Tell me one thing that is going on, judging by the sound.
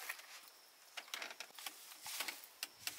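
Fresh leafy herbs rustle as they are set down.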